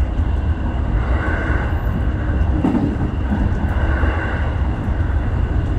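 A level crossing bell rings as the train passes.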